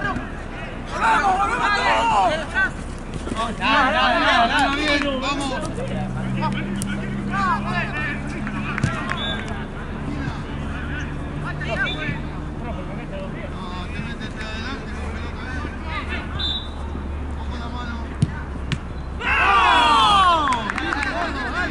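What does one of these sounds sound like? Young men shout to each other across an outdoor pitch.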